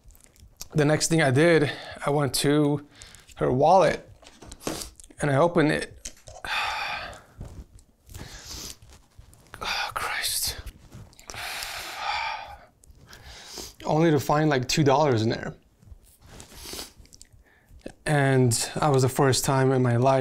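A young man talks calmly and close by, in short bursts.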